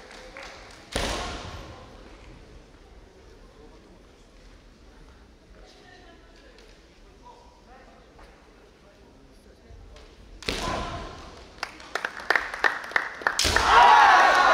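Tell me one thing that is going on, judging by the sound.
Bamboo swords strike with sharp cracks in a large echoing hall.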